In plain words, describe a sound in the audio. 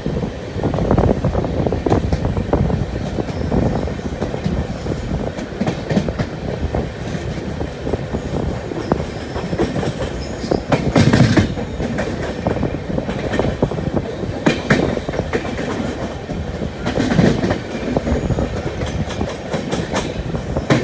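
Train wheels clatter over rail joints and points.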